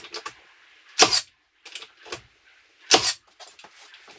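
A nail gun fires with sharp bangs.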